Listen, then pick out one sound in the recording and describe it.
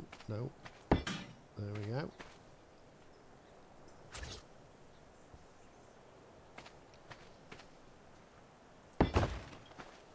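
A stone block thuds into place.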